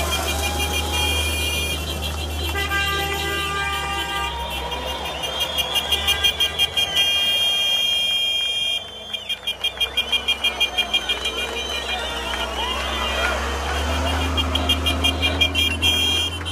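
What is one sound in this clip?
A large truck engine idles with a steady low rumble nearby.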